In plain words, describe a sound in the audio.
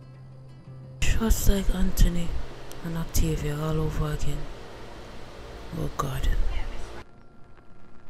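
A young woman speaks tearfully close by.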